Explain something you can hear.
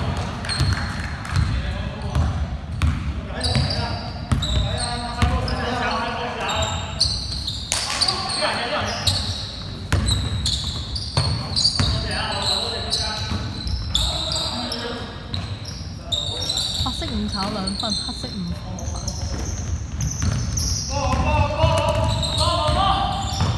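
A basketball bounces on a hard floor in a large echoing hall.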